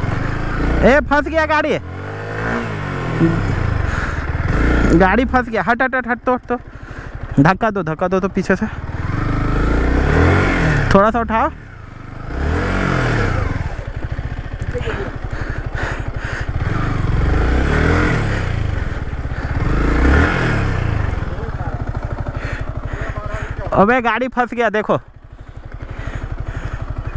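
A motorcycle engine runs with a steady low throb close by.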